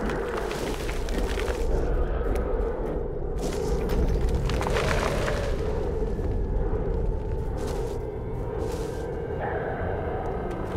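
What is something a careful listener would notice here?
Footsteps crunch steadily over grass and stone.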